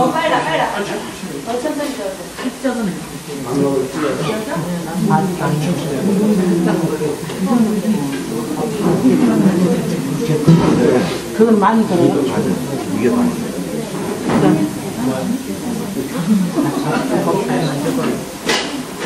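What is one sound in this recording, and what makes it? A group of adults murmur and chatter nearby.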